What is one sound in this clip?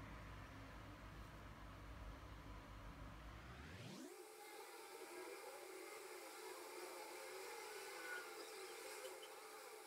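Thick liquid trickles and pours into a plastic cup.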